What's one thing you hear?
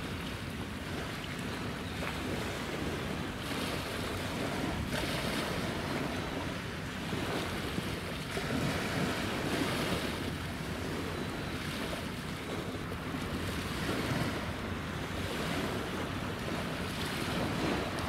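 A ship's engine rumbles low and steady nearby.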